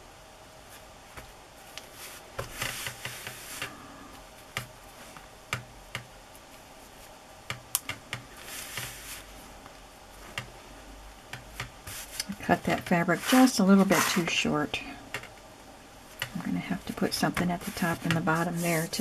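Hands rub and press down on paper with soft rustling and taps.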